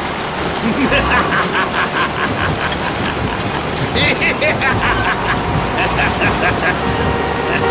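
A man shouts loudly and angrily.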